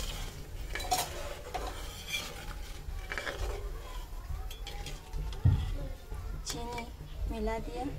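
A metal skimmer scrapes against the side of a pot.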